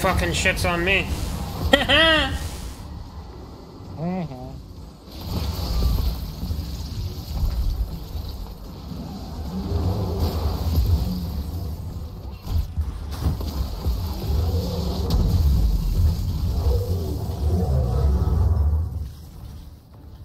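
Energy weapons fire and explode in a game battle.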